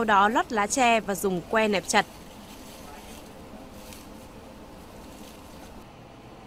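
Leaves rustle as hands press them down.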